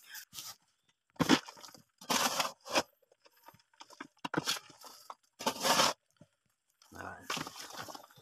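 A shovel scrapes and scoops dry soil.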